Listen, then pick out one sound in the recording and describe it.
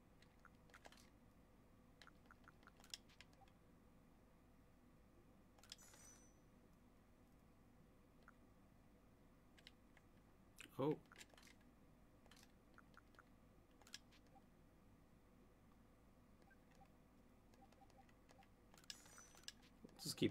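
Short menu clicks tick now and then.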